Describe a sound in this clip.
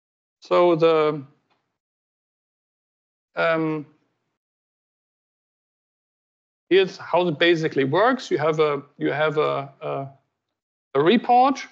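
A man speaks calmly in short phrases, heard through an online call.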